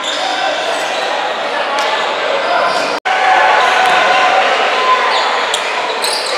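A basketball thuds on the wooden floor.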